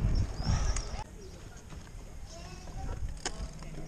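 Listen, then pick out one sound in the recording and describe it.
Bicycle tyres hum quietly on smooth pavement.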